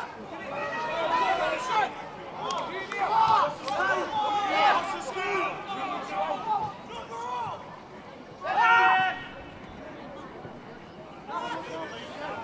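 Players shout to one another across an open field.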